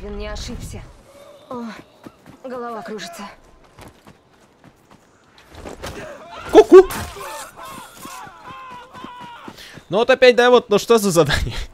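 Men shout and cry out in alarm.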